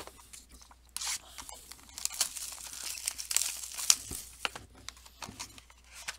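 Plastic wrapping crinkles and rustles as hands tear it open.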